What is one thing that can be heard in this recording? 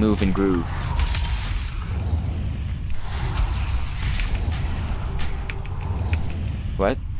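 Magic spells zap and crackle in a game.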